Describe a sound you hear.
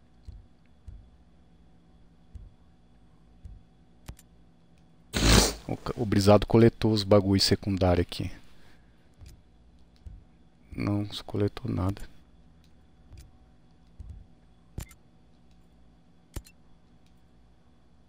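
Soft interface clicks sound now and then as menu options change.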